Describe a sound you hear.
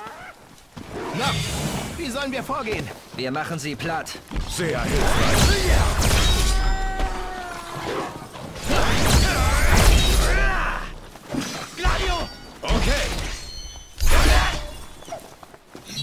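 Blades swing and strike with loud, sudden impacts.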